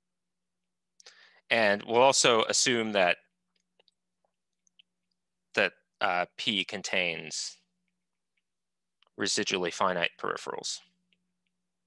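A man speaks calmly in short bursts through a microphone on an online call.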